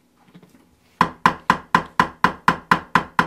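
A hammer taps a metal stamp into leather in quick, even blows.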